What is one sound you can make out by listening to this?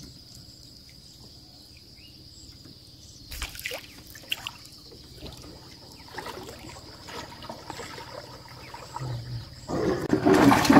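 Water laps and splashes against a small wooden boat.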